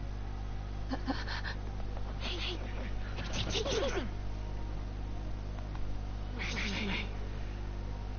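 A young woman speaks softly and anxiously close by.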